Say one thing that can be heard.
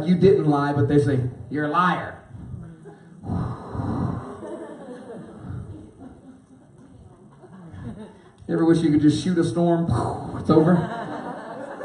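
A man speaks with animation into a microphone over loudspeakers in a large echoing hall.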